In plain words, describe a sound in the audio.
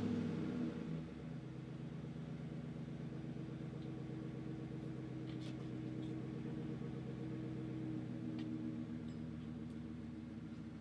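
A truck's exhaust idles with a deep, steady rumble.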